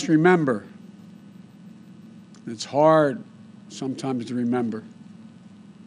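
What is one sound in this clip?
An elderly man speaks slowly and solemnly into a microphone, with long pauses.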